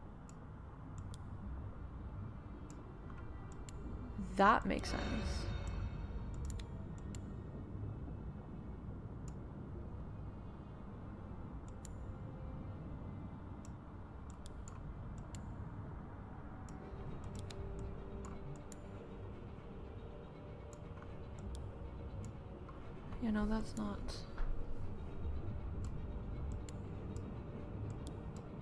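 Soft clicks sound as puzzle tiles are moved and dropped into place.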